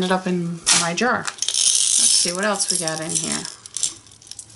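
Beads rattle and shake inside a glass jar.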